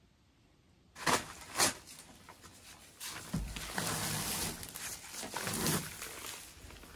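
A heavy paper sack rustles and crinkles close by.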